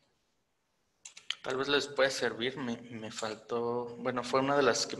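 A young man speaks close to a microphone in a calm, explaining tone.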